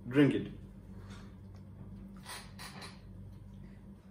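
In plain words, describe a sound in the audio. A young man sips a drink and swallows.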